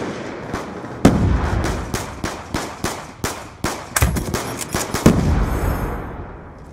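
Video game gunfire crackles in rapid bursts.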